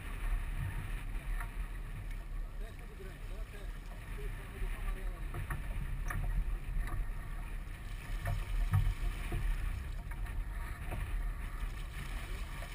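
Water splashes against a sailboat's hull.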